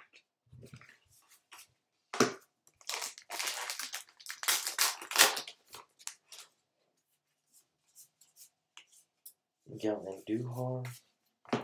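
Trading cards shuffle and flick against each other.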